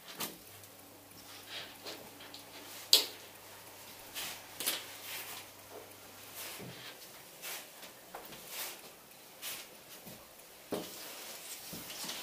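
Fabric rustles softly as garments are laid down on a table.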